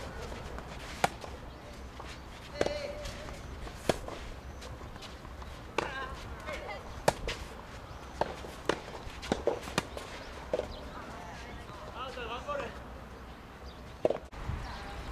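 Tennis balls pop off rackets outdoors.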